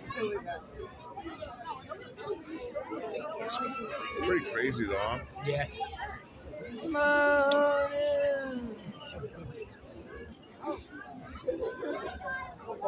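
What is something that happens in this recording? A crowd of men and women chatters and exclaims nearby outdoors.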